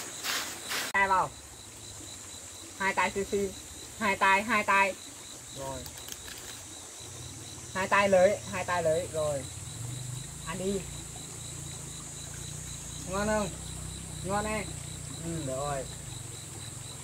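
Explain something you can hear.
A young woman speaks softly and warmly to a toddler close by.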